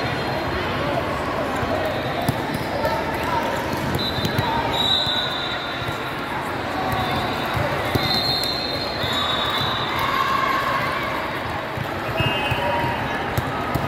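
A crowd of young women and girls chatters and calls out in a large echoing hall.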